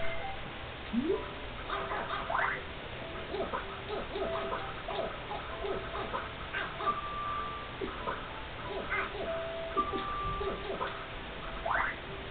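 Short electronic blips sound as keys are tapped on a game keyboard.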